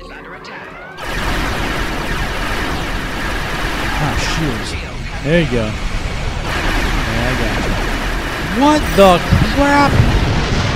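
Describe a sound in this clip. Spaceship weapons fire in rapid, crackling bursts.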